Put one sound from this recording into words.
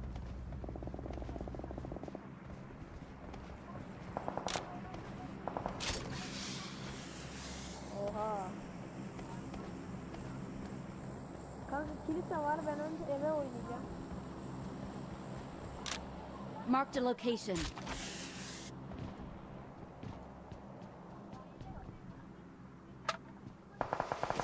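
Footsteps run quickly over the ground.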